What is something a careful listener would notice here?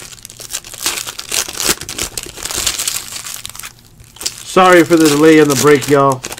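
Foil card pack wrappers crinkle and tear open.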